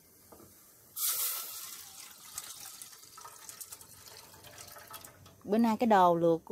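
Liquid pours and splashes into a metal pot.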